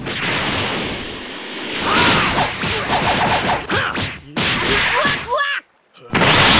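Energy blasts crackle and explode in bursts.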